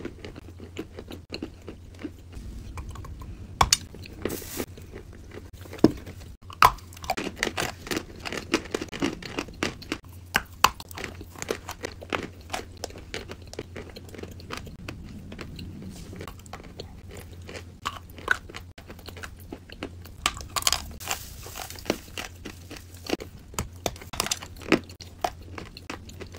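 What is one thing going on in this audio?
Two young women chew loudly with crunching sounds, close by.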